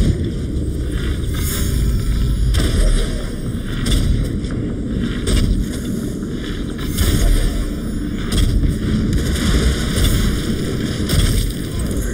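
A bowstring twangs as arrows are loosed.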